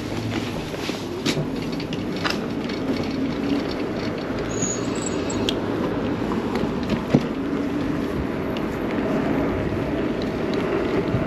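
Wind rushes steadily past a moving bike.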